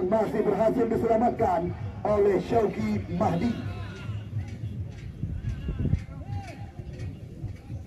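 Spectators shout and call out outdoors.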